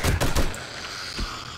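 Rapid gunshots ring out with a heavy echo.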